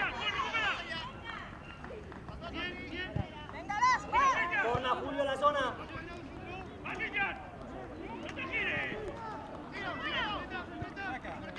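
Young boys shout and call out across an open outdoor pitch.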